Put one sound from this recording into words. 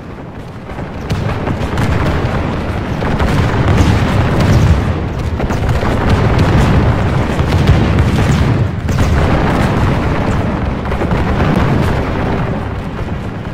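A large group of soldiers tramps over grass.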